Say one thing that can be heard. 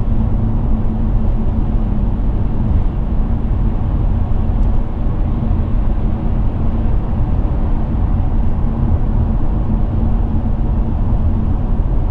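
A car's engine hums steadily as it cruises at speed.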